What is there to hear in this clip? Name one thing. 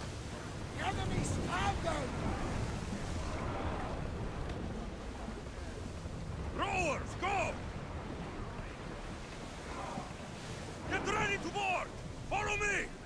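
Water rushes and splashes against a ship's hull.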